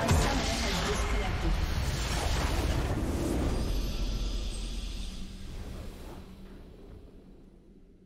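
A triumphant victory fanfare swells loudly and then fades away.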